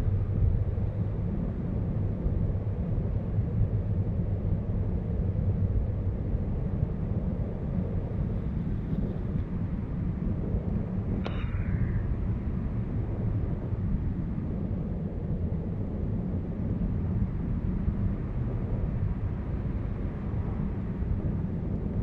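Strong wind rushes and buffets loudly past, outdoors high in the air.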